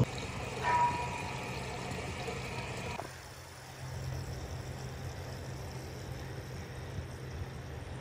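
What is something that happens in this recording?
Water sloshes and trickles in a cistern.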